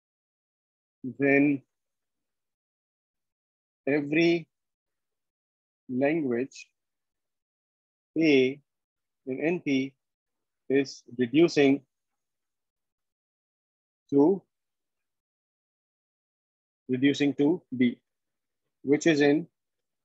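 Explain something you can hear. A man speaks calmly over an online call, pausing often between short phrases.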